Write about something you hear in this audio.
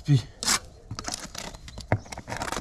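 A brush scrapes and dabs on rough concrete.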